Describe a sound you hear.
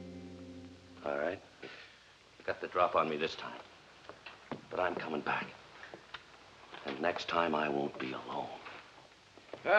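A man speaks in a firm voice.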